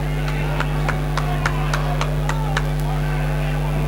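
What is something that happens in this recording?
A crowd claps in a steady rhythm in a large echoing hall.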